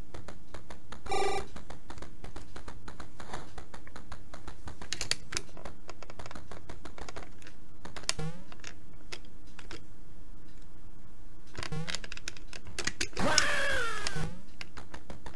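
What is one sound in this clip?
Retro video game sound effects beep and chirp.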